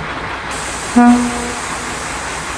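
A railcar horn gives a short toot.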